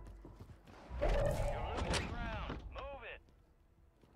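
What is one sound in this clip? A wooden door swings open with a creak.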